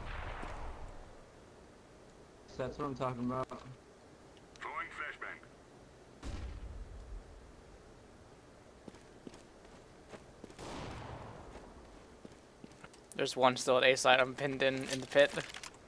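Footsteps tread on hard ground.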